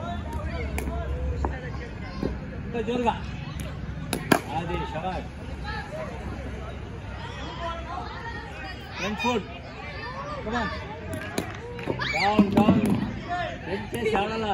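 A cricket bat strikes a ball with sharp knocks.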